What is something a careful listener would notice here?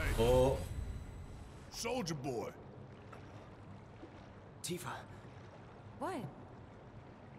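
A young man speaks in short bursts close to a microphone.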